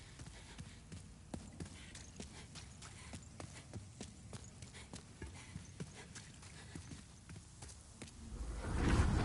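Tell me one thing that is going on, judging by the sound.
Footsteps clatter quickly on stone.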